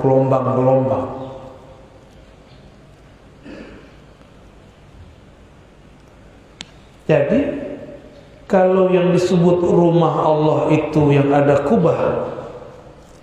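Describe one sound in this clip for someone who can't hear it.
A young man speaks with animation into a microphone, with pauses.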